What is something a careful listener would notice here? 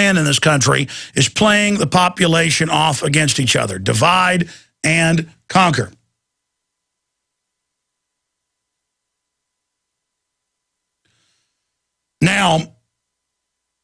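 A middle-aged man speaks forcefully and with animation into a close microphone.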